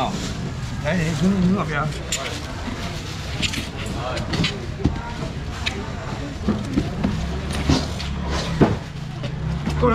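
Styrofoam boxes and lids scrape and thump.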